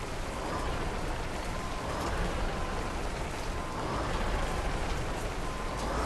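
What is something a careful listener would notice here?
A truck engine rumbles steadily.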